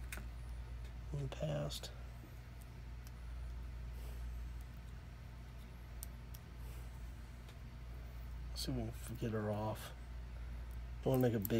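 Small plastic phone parts click as they are pried and handled.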